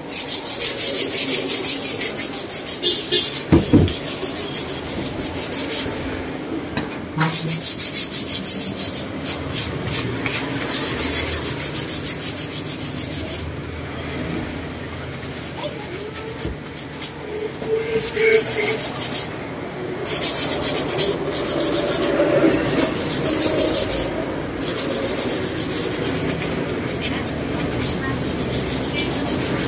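Sandpaper rubs briskly back and forth on wood in quick strokes.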